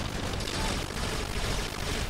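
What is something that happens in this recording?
Rapid gunfire rattles.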